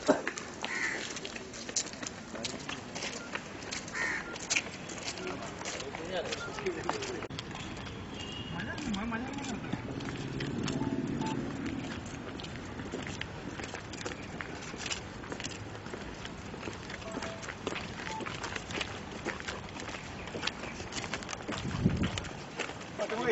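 Footsteps of a group of men scuff and tap on a concrete path.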